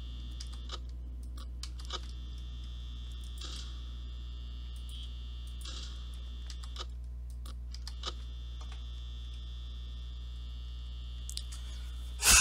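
Short sharp clicks sound now and then as buttons are pressed.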